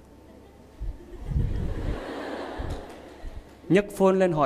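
A large audience laughs softly.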